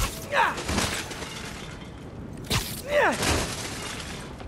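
Heavy punches land with dull thuds.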